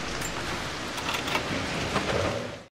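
A heavy wooden door creaks as it is pushed open.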